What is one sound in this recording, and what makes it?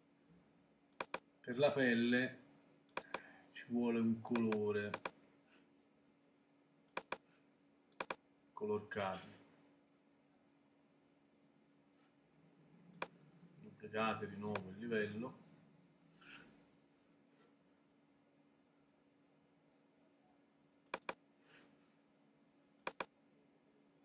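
A computer mouse clicks sharply now and then.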